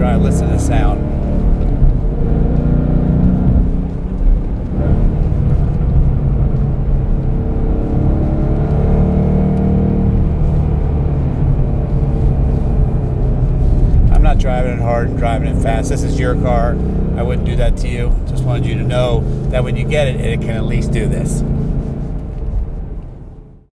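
A car engine roars steadily from inside the cabin.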